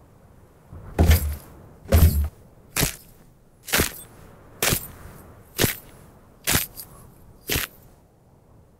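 Boots thud slowly on hard ground.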